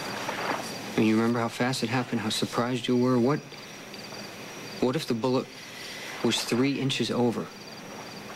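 A young man speaks firmly and quietly, close by.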